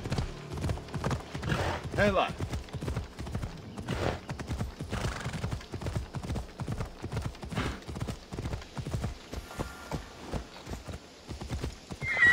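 Horse hooves thud quickly and steadily over rocky ground.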